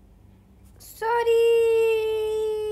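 A cheerful game jingle plays loudly.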